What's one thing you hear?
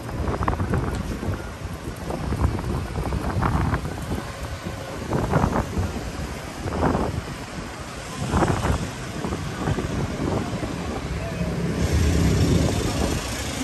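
Traffic rumbles past outdoors.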